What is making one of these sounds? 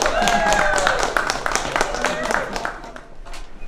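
A group of people shout and cheer in a noisy crowd.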